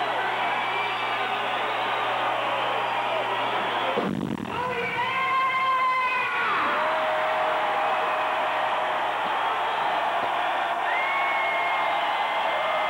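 Loud live rock music plays through large speakers in an echoing hall.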